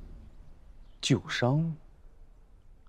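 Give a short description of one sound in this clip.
A young man asks a short question.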